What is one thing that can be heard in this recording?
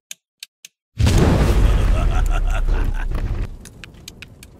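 A fiery whirlwind roars loudly and then dies down.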